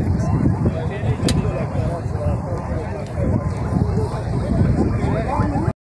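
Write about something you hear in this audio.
A large outdoor crowd of men chatters and calls out all around.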